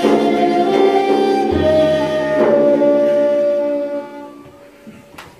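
Traditional instruments play a melody in a large hall.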